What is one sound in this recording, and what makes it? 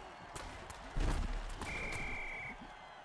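Armoured players crash together with a heavy thud.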